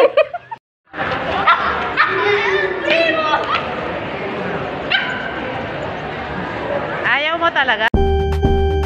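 A small dog yelps.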